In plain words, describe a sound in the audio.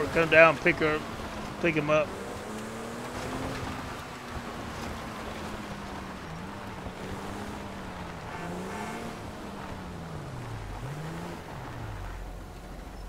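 A car engine hums and rises and falls in pitch as the car drives.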